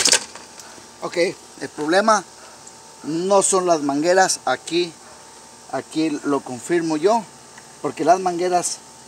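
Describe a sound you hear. A middle-aged man talks close by, calmly.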